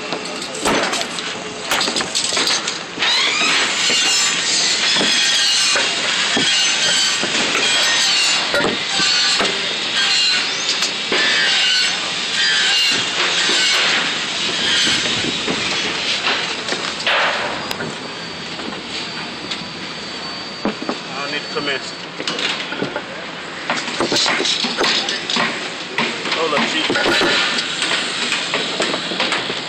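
Metal parts clank and knock as they are handled.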